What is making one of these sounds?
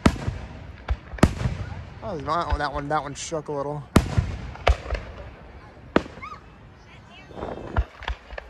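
Aerial firework shells burst with sharp booms echoing far off.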